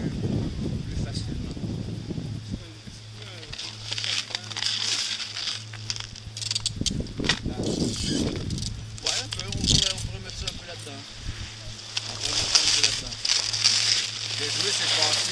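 A man speaks calmly to a group outdoors, close by.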